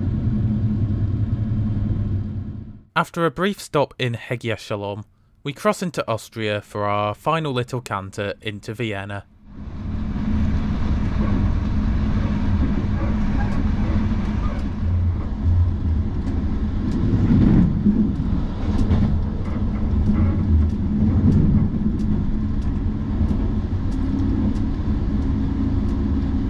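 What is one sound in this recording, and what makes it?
A train rumbles and rattles steadily along the tracks from inside a carriage.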